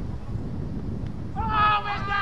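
A cricket bat knocks against a ball.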